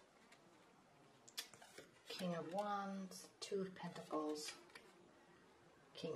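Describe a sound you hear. Playing cards slide and tap softly on a cloth-covered table.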